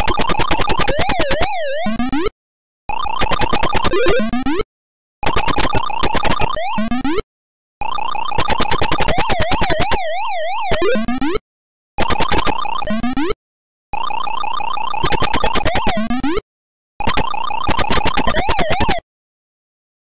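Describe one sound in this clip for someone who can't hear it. An electronic warbling tone rises and falls.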